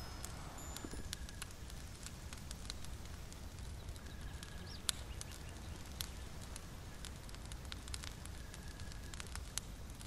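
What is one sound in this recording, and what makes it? A small fire crackles and pops steadily.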